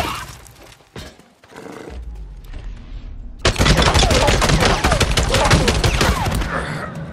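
A pistol fires several sharp shots.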